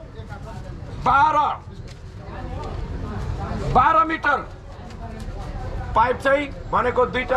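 An elderly man shouts loudly through a megaphone outdoors.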